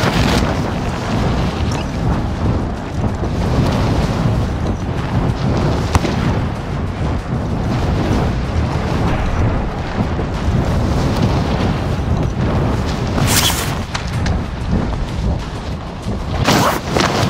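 Wind rushes loudly and steadily past while gliding through the air.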